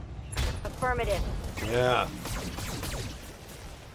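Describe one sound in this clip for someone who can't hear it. Laser weapons fire in quick bursts with heavy impacts.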